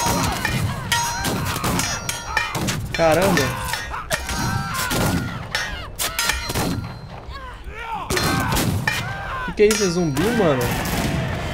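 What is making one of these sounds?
Gunshots and blasts crack and boom in quick bursts.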